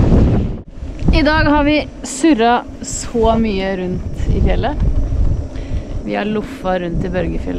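A woman speaks calmly and close to the microphone, outdoors in a light wind.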